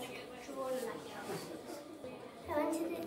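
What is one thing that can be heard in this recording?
A young boy speaks calmly and close by.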